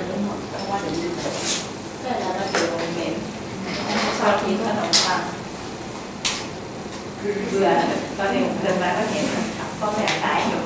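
A man speaks calmly in a slightly echoing room.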